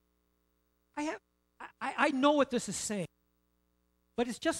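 A middle-aged man speaks with animation through a microphone, with pauses.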